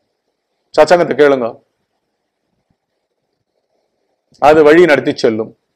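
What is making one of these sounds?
An older man speaks calmly and clearly into a close microphone, with pauses.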